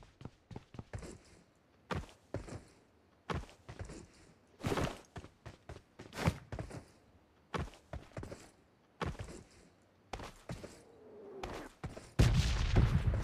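Footsteps thud on dirt at a steady pace.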